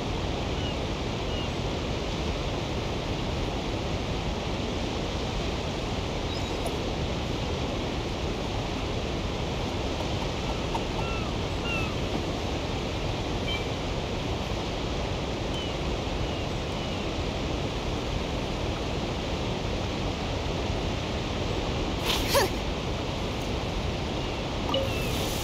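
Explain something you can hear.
Gentle waves lap steadily on a shore.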